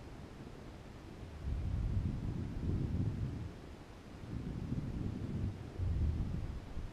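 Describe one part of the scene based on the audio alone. Wind buffets and rumbles in low gusts.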